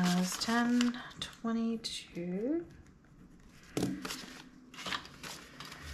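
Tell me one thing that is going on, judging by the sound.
Paper banknotes rustle as they are handled.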